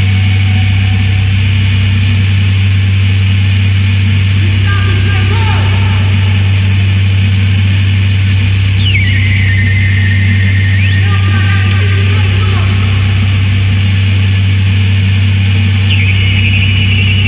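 A loud electronic drone hums steadily through a sound system.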